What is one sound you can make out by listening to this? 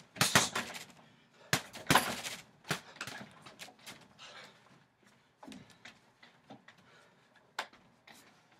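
Feet shuffle and thump on wooden decking.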